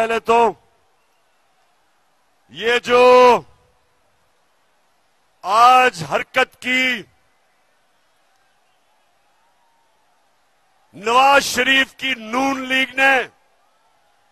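A man speaks forcefully into a microphone through loudspeakers, in short bursts with pauses.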